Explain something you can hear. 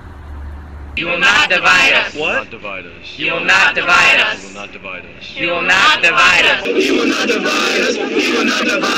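A crowd of young men and women chants loudly together close by.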